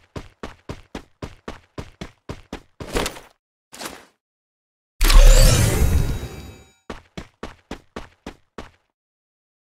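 Quick footsteps thud on the ground at a running pace.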